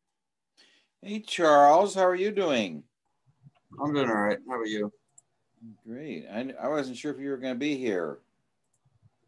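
An elderly man talks over an online call.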